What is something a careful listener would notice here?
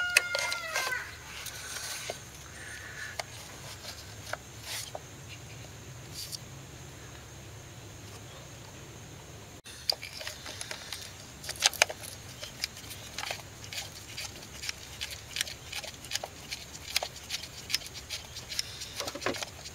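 Plastic connectors click and rattle under hands.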